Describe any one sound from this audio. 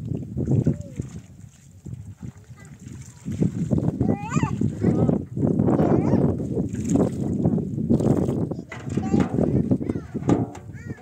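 Water splashes and sloshes in a basin as dishes are rinsed.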